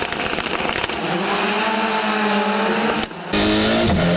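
Racing car engines roar as a pack of cars pulls away from a standing start.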